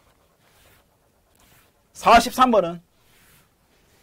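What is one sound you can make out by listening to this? A board eraser rubs across a chalkboard.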